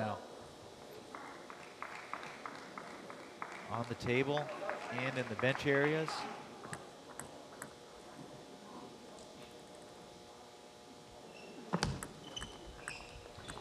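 A table tennis ball clicks quickly back and forth off paddles and the table.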